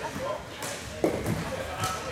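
A ball thumps off a foot.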